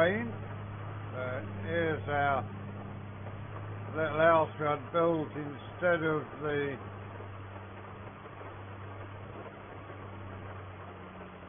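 A tractor engine hums with a steady low drone.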